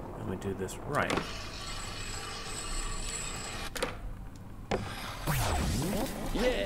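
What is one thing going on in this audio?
A skateboard grinds along a metal rail.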